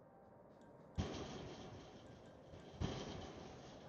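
A door thuds shut.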